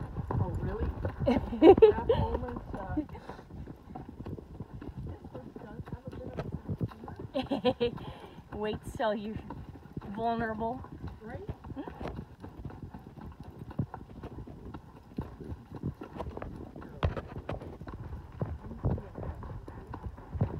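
A horse's hooves clop steadily on a dirt trail.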